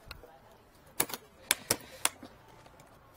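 Metal latches on a case click and clack.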